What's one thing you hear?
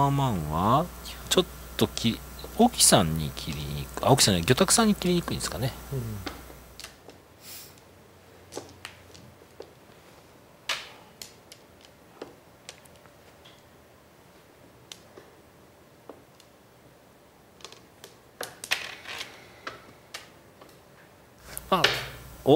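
Mahjong tiles click sharply against each other and the table.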